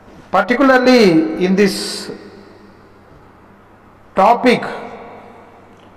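A man speaks calmly into a microphone, in a room with noticeable echo.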